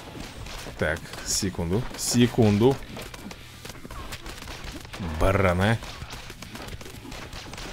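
Rapid gunshots crackle in a video game.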